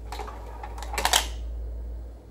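A CD player's tray clunks to a stop.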